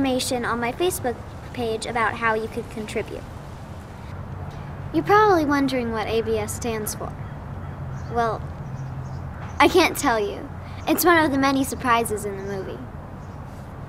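A young girl speaks calmly and close by.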